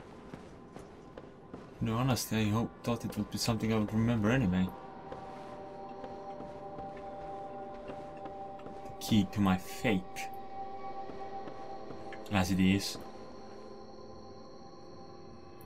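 Armoured footsteps thud up wooden stairs.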